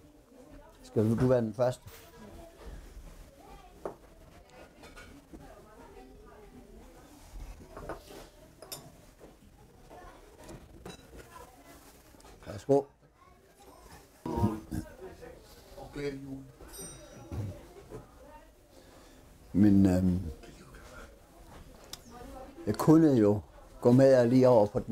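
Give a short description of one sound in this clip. Men talk with one another close by.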